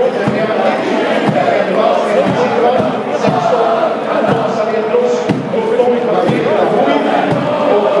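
A large stadium crowd sings loudly in unison.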